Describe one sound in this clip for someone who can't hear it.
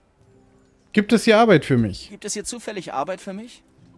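A man talks calmly in a game's dialogue.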